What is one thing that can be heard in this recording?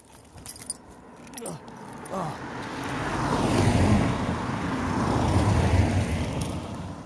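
Cars rush past close by on a road.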